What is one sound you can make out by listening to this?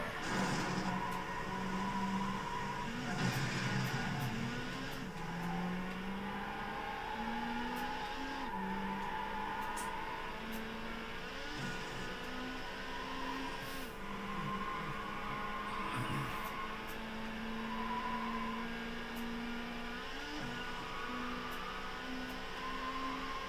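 A racing car engine roars and changes pitch as it shifts gears, heard through a television speaker.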